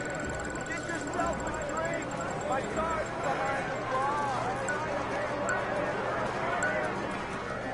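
A prize wheel spins with rapid clicking ticks.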